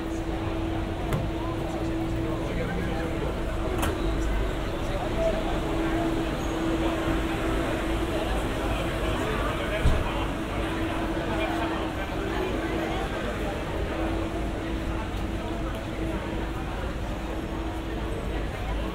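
A crowd of people murmurs and chatters outdoors in a busy street.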